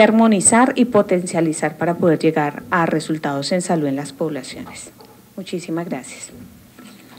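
A woman speaks calmly into a microphone in a room with a slight echo.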